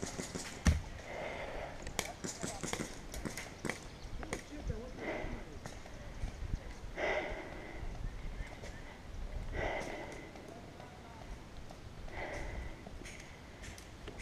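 A paintball pistol fires sharp pops close by.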